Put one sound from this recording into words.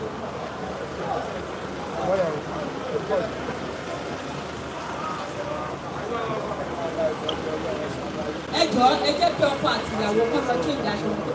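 Several men talk over one another close by, loudly and with animation.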